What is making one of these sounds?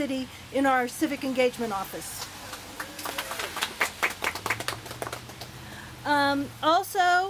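A middle-aged woman speaks calmly through a microphone.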